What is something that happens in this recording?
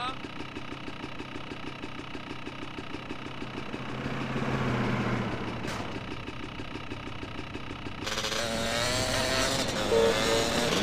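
A motorcycle engine putters steadily at low speed.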